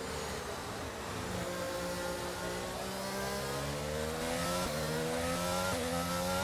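A racing car engine roars and climbs in pitch, dropping briefly with each gear change.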